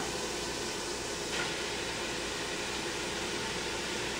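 Ground meat drops into a metal pot.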